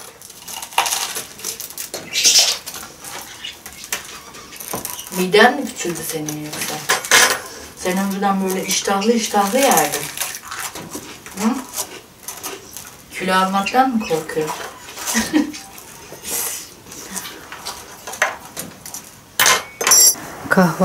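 Cutlery and glasses clink on plates.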